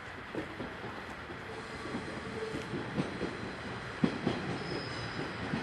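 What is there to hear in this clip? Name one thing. A train rolls along the tracks in the distance, its wheels clacking over rail joints.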